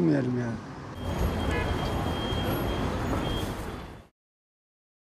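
Street noise and distant footsteps murmur outdoors.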